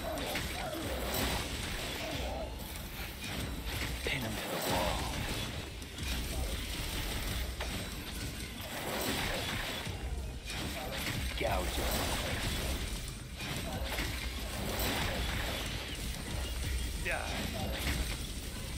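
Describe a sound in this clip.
Sword slashes and impacts crack and thud in a fight.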